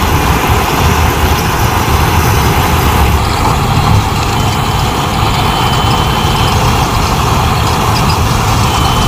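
A combine harvester engine roars steadily close by.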